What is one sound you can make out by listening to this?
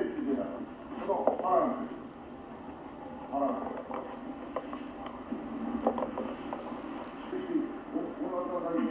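An elderly man speaks calmly to a group.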